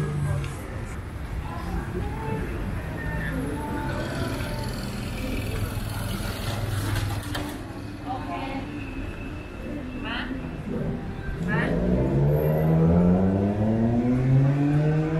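Traffic hums steadily along a street outdoors.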